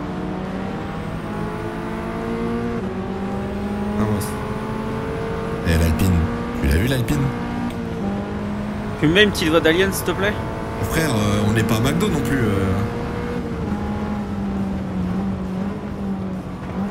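A racing car engine drones and revs up through the gears.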